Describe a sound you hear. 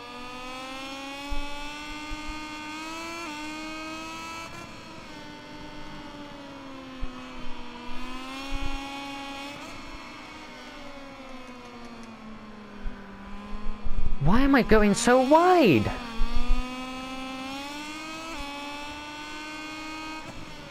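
A motorcycle engine whines at high revs, rising and falling as it shifts gears.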